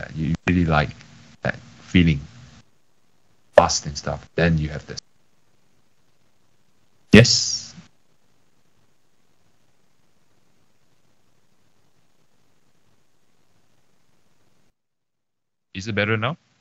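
A young man speaks casually in short bursts over an online call.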